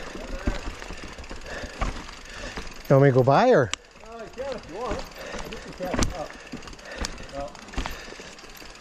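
A bicycle rattles and knocks over bumps.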